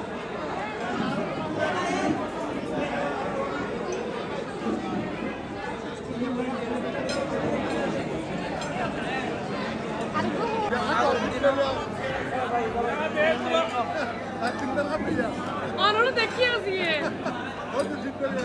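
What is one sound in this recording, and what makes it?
A crowd of men and women chatter all around in a busy hall.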